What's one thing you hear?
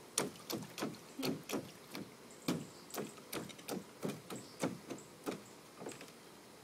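A toddler's feet thump and patter on a hollow plastic pool.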